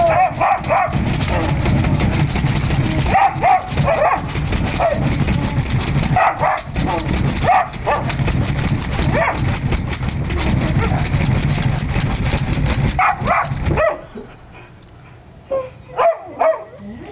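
A dog whines and yelps in short, high cries.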